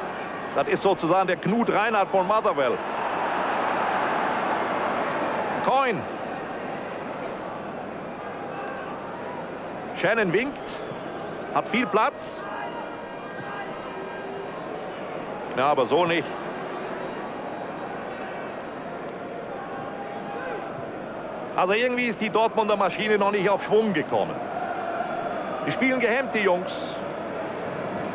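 A large stadium crowd roars and murmurs throughout.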